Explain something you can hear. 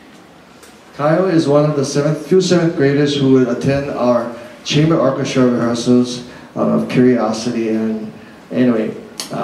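An older man speaks calmly through a microphone and loudspeakers in an echoing hall.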